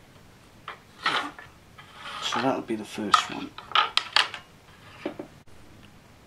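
Thin metal wire scrapes and rattles against wood.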